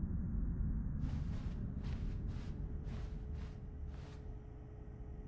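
Footsteps walk across a hard floor.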